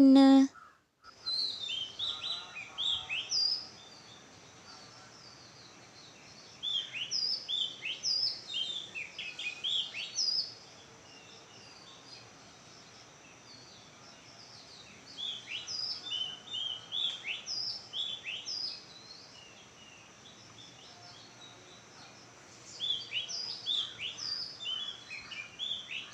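Small birds chirp in short, rising bursts outdoors.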